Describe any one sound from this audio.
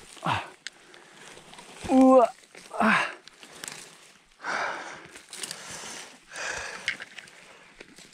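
Hands scrape and rustle in dry soil and leaves.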